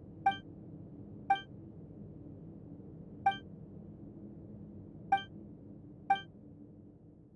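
A soft electronic chime sounds several times.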